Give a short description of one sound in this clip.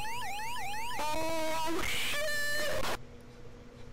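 A short falling electronic jingle plays.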